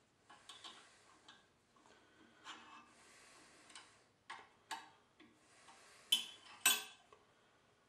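Metal parts click and clack as they are set in a vise.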